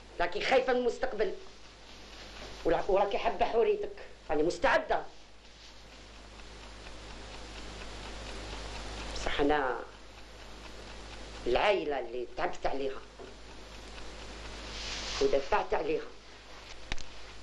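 A middle-aged woman speaks calmly and earnestly, close by.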